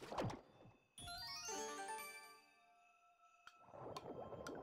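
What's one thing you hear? Bright chiming notes ring out in a quick rising run.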